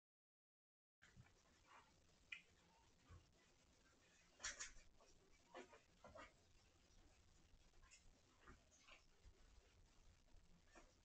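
Kittens wrestle and scratch against a woven wicker bed, with soft rustling and scraping.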